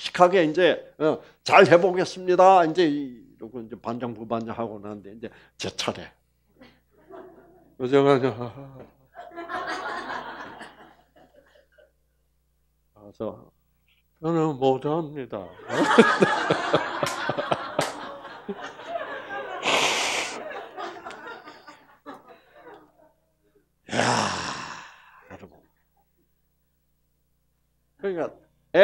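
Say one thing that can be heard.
An elderly man speaks with animation through a headset microphone.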